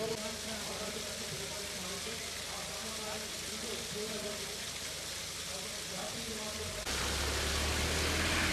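Water splashes steadily down a stone wall into a pool.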